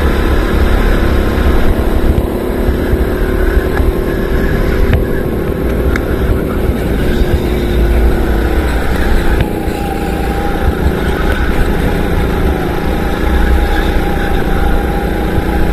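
A go-kart engine buzzes loudly close by, its pitch rising and falling.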